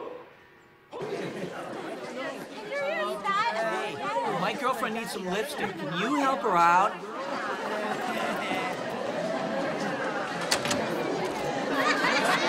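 Teenagers chatter and talk over one another in an echoing hallway.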